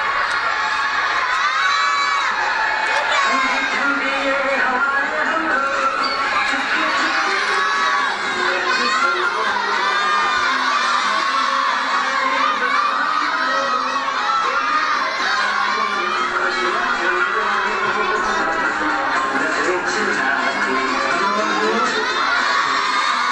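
A crowd of young children shouts and cheers excitedly nearby, in a large echoing hall.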